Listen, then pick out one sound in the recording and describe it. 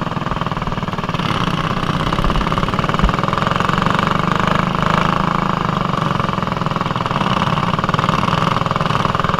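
A small kart engine buzzes loudly and steadily close by.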